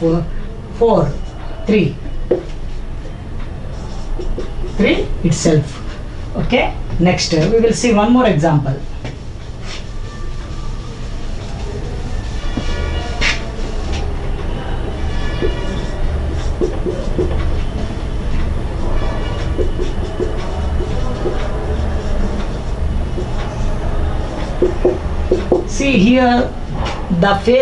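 A man speaks calmly, explaining close by.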